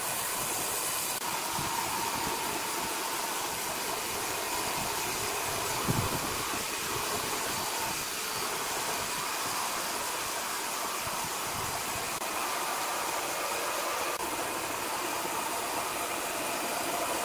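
Machinery hums steadily.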